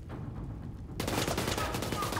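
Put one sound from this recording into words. Flames burst and roar.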